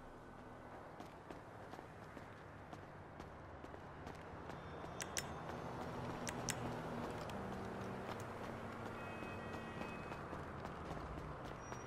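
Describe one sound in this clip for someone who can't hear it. Footsteps run across paving.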